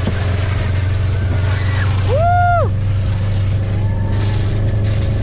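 A plastic sled hisses and scrapes over snow.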